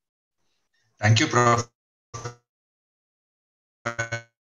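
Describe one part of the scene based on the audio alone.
A second man speaks briefly over an online call.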